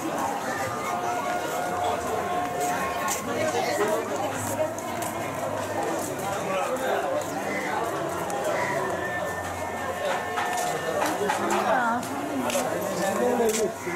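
A busy street crowd chatters all around.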